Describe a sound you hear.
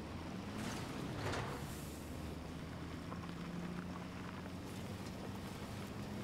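Tyres crunch over snow and gravel.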